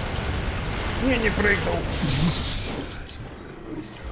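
A blade slashes and strikes a creature.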